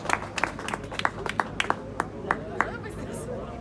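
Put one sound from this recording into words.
A woman claps her hands in a steady rhythm.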